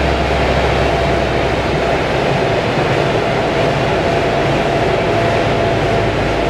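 Tyres whir loudly against spinning rollers.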